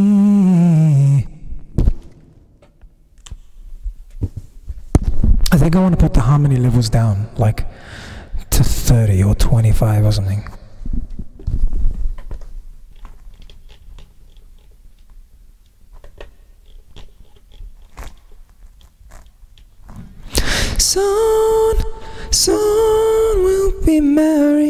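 A man sings close into a microphone.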